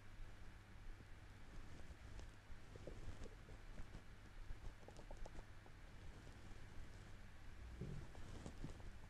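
A man talks quietly through a microphone.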